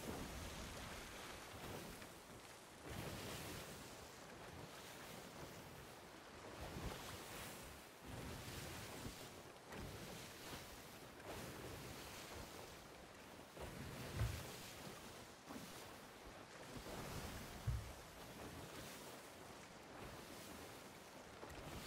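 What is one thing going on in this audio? Waves surge and crash against a ship's hull.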